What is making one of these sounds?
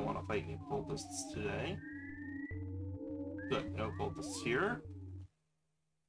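Chirpy video game sound effects bleep and slide in pitch.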